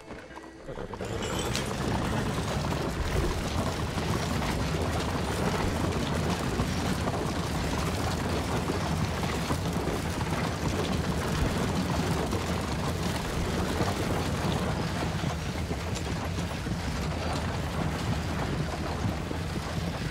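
Wooden wagon wheels rattle and rumble over a cobbled road.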